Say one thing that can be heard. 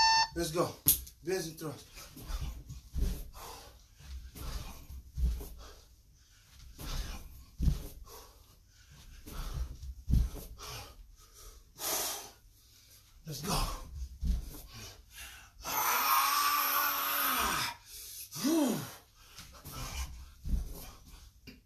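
Feet thump on a wooden floor during exercise.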